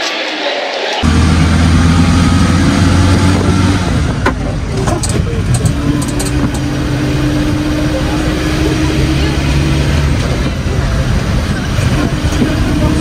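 A van engine hums steadily from inside the van.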